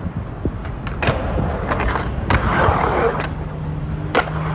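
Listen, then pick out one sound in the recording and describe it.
A skateboard clacks and knocks against concrete edges.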